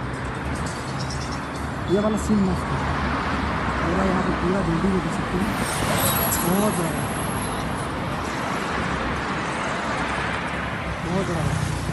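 Traffic roars past on a busy road outdoors.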